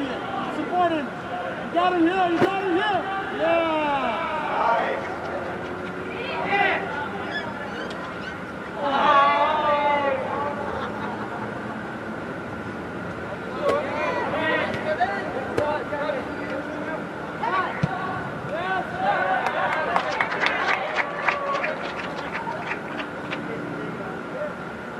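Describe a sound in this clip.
Young women shout and call out to each other across a large echoing hall.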